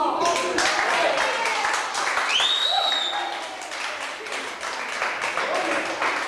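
A crowd claps and applauds in a large hall.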